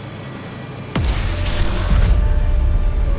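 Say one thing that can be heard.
A sword blade thuds heavily into the ground.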